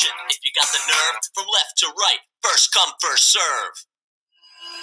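Rap music with a singing voice plays over a beat.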